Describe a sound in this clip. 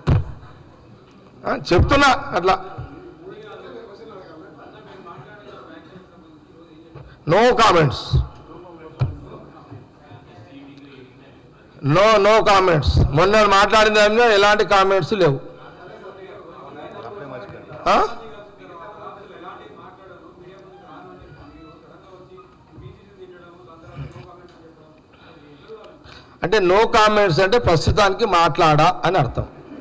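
A man speaks into a microphone with animation, now and then raising his voice loudly.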